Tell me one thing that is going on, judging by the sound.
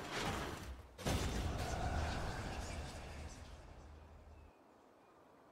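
A loud blast booms and slowly fades.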